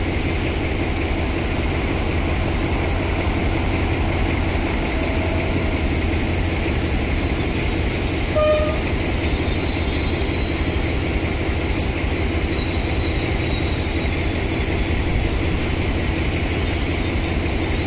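A diesel locomotive engine rumbles steadily close by.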